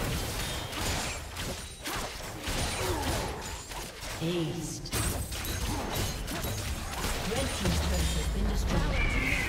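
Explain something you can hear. Sharp hits and clashes ring out repeatedly in a video game battle.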